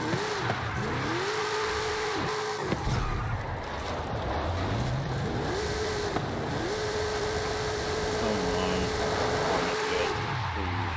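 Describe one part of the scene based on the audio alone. A car engine revs high and drops as the car drifts.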